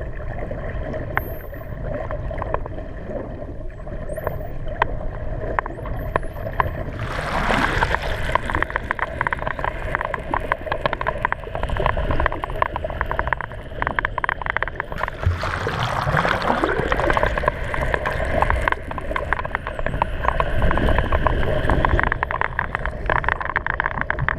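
Dolphins click underwater in rapid trains.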